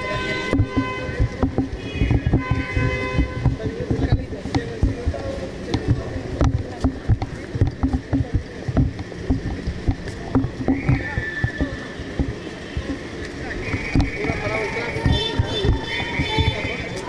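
A crowd of men and women talk and murmur outdoors.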